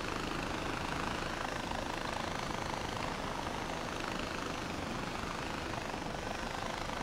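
A zipline pulley whirs and rattles steadily along a cable.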